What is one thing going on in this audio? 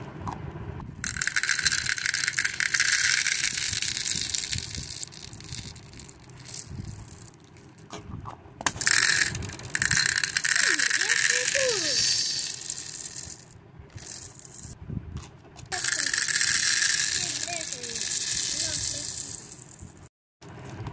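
Plastic beads pour and rattle into a plastic jar.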